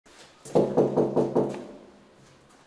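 A fist knocks loudly on a metal door several times.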